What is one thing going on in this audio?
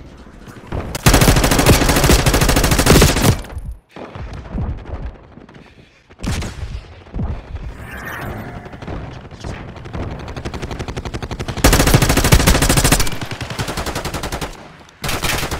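A rifle fires rapid bursts of loud gunshots.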